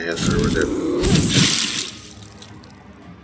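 A burst of flame roars and crackles.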